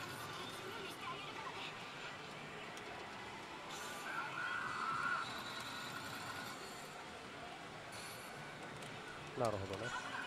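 Buttons on a slot machine click as they are pressed.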